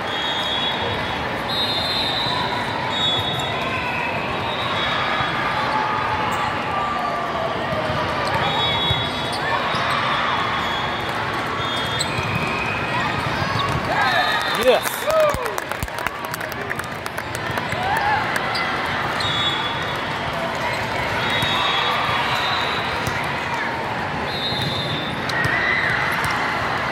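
A crowd of voices murmurs and cheers in a large echoing hall.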